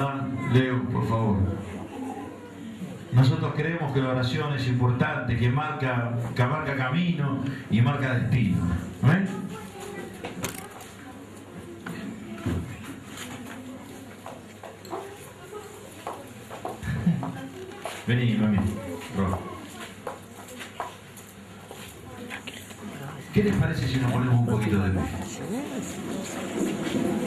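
A middle-aged man speaks with animation into a microphone, heard through a loudspeaker in a room.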